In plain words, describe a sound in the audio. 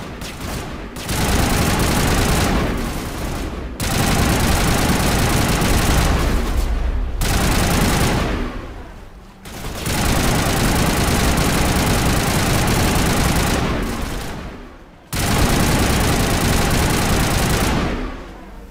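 Heavy gunfire blasts in rapid bursts.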